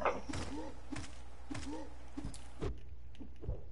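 A blade swishes through the air in quick slashes.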